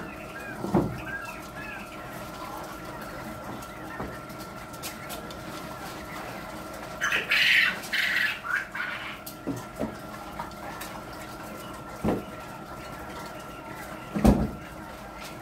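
Metal cage parts knock and clatter.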